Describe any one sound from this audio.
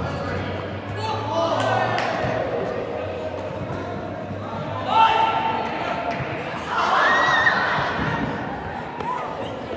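Young players shout and call out to each other across a large echoing hall.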